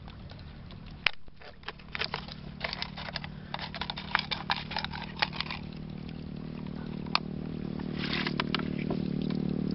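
Hands clatter and rustle in a plastic tub.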